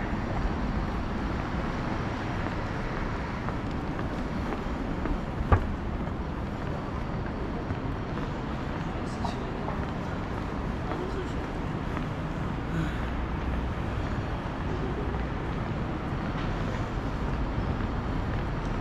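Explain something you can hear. City traffic hums steadily in the distance outdoors.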